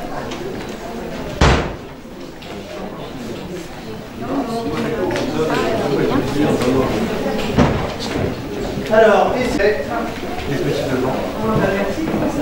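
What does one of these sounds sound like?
A crowd of people murmurs and chats in an echoing room.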